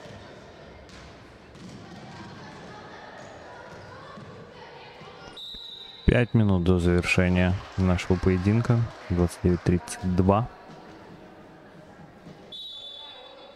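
Sneakers squeak on a hardwood court in a large echoing hall.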